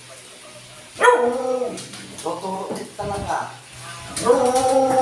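A dog whines and yelps in high, wavering cries.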